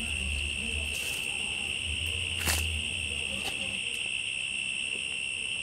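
A shovel scoops soil and tosses it down with soft thuds.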